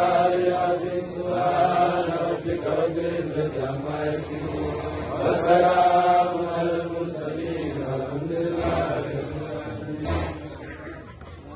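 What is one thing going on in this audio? A young man chants in a melodic voice into a microphone, heard through a loudspeaker.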